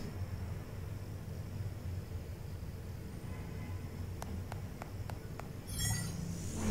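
A small drone's rotors hum steadily close by.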